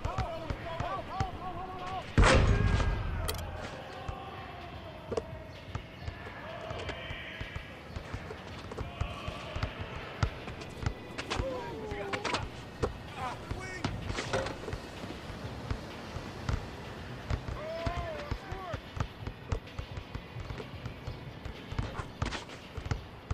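A basketball bounces repeatedly on a hard court.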